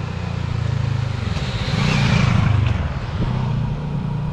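A motorcycle passes close by with an engine roar that rises and fades.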